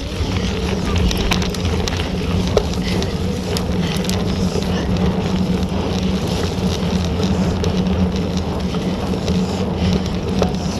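Mud and grit click and spatter against a bicycle frame.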